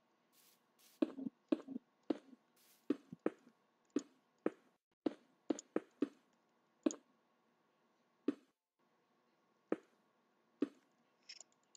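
Stone blocks are placed with sharp, dull thuds, one after another.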